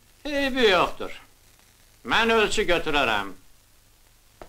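A man speaks loudly and emphatically, close by.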